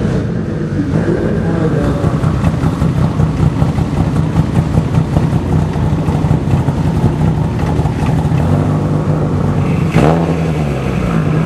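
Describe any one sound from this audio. A car engine idles with a rough, throbbing rumble nearby.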